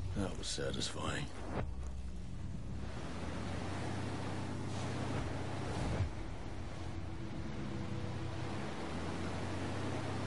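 Water rushes and sprays against a moving boat.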